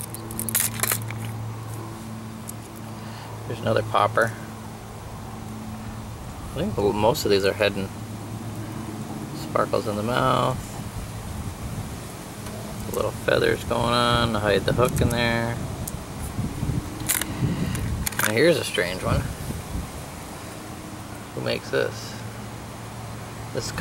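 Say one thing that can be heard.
Hard plastic fishing lures clack and rattle against a plastic tackle box.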